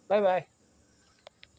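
A man speaks a short word close to the microphone.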